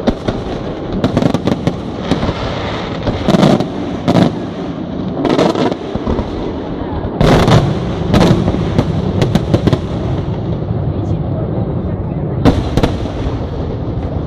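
Fireworks crackle and fizz in a steady rumble.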